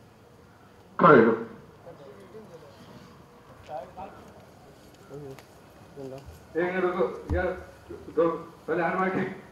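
A middle-aged man speaks forcefully, close by.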